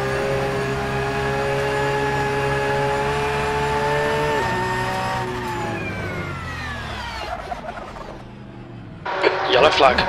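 A racing car engine whines loudly at high revs, then drops in pitch as the car slows.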